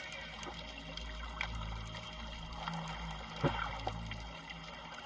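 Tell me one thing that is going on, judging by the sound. Scuba divers breathe out underwater, releasing rumbling bursts of bubbles.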